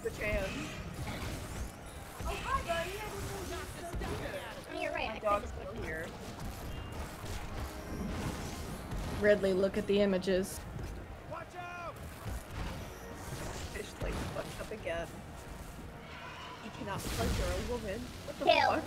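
Video game combat effects crash and thud as creatures fight.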